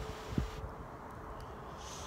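A man chews food with his mouth full.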